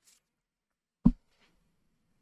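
A hand thumps down on paper.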